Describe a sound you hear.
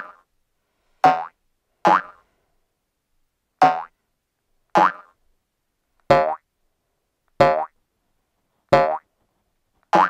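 A cartoon ball bounces with springy boing sounds, again and again.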